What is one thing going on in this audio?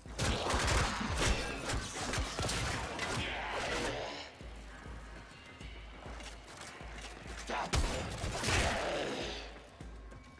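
Gunshots and blasts crackle in quick bursts.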